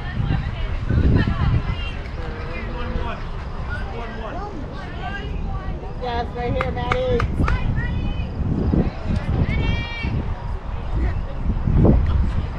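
Men call out and chatter across an open field.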